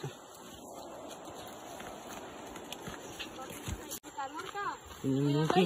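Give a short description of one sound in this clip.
Footsteps crunch on a leafy, stony trail.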